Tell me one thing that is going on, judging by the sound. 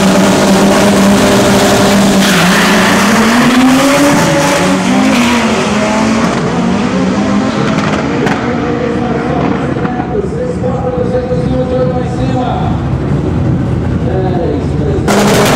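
Two race car engines roar loudly as the cars launch and speed away.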